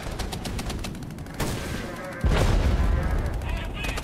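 Machine-gun fire rattles in a burst.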